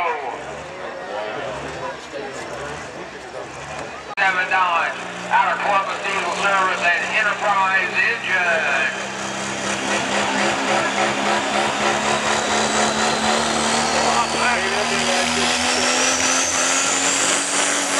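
A diesel truck engine roars loudly and climbs steadily in pitch.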